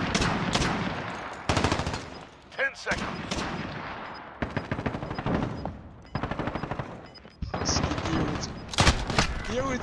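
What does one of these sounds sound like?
Rapid bursts of gunfire ring out close by.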